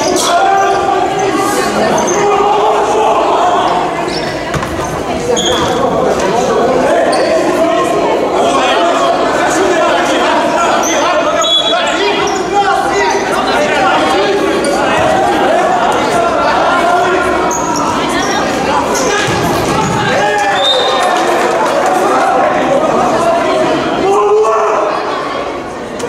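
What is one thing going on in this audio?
Shoes squeak sharply on a hard floor.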